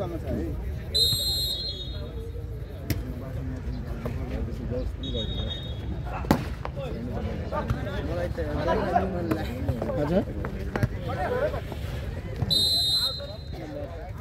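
A referee's whistle blows in short, sharp blasts.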